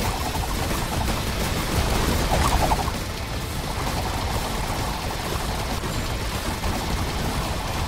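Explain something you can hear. Rapid gunfire crackles.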